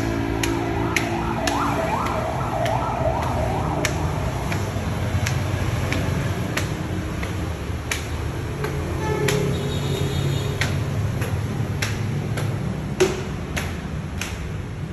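Footsteps climb stairs at a steady pace.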